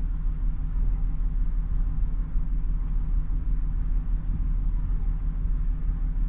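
A ship's engine rumbles low and steadily.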